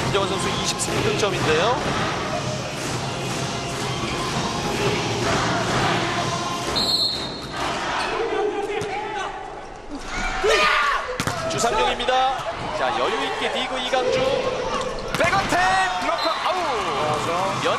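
A crowd cheers loudly in a large echoing hall.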